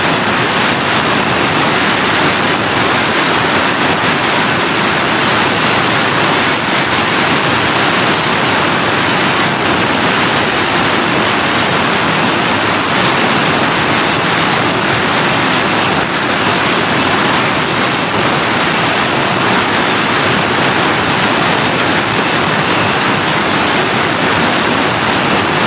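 A power cutter grinds loudly and steadily through a board.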